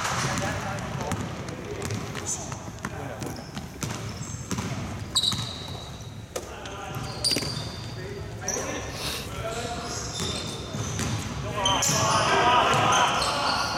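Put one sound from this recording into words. A basketball bounces with hollow thuds on a wooden floor.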